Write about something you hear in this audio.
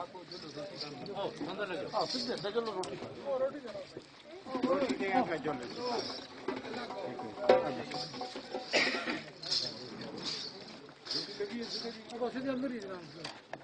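Several men talk and call out over one another outdoors.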